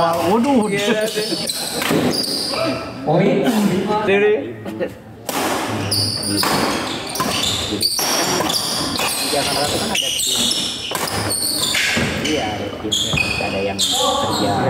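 Shuttlecocks are struck sharply with rackets in a rally.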